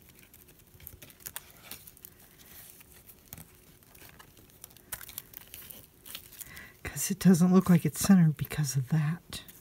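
Paper rustles and crinkles as hands press and smooth it.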